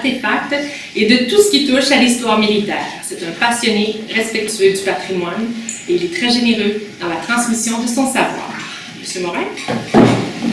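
A middle-aged woman speaks formally to a room.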